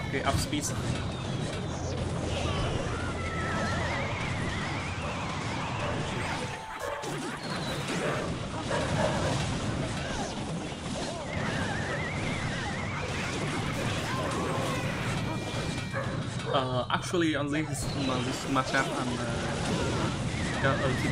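Game battle sound effects clash and burst.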